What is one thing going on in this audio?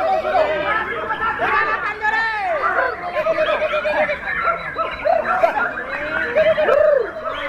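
A caged songbird sings loud, varied chirping phrases.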